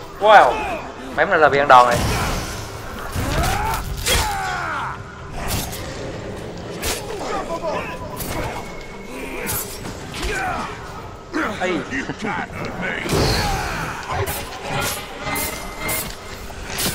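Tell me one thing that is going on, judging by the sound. Blades clash and strike with sharp metallic hits.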